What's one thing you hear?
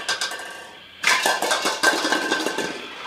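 Plastic toy bowling pins clatter onto a wooden floor.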